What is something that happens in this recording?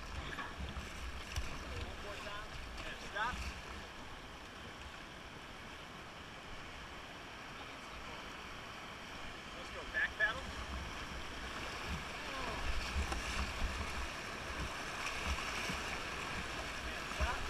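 Water splashes against the side of a raft.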